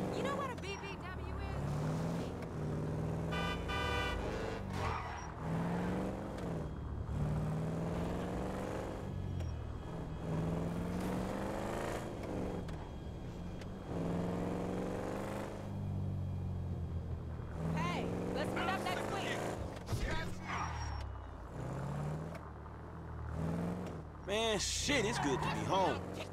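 A car engine revs hard and climbs through the gears.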